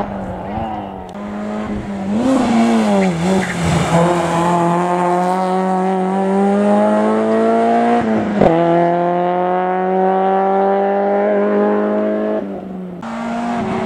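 A second rally car engine revs loudly and roars past.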